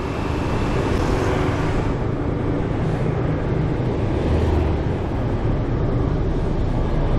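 Traffic rumbles along the street.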